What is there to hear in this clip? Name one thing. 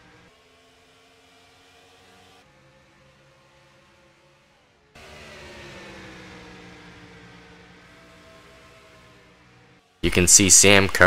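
Race car engines drone steadily as cars speed past.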